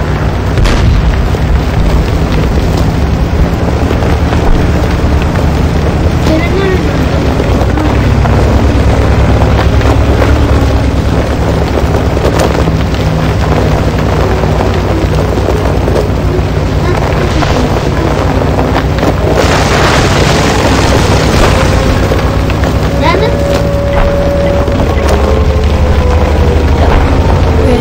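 A heavy tank engine rumbles steadily.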